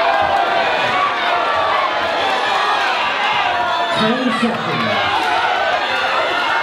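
A crowd shouts and cheers loudly, echoing in a large hall.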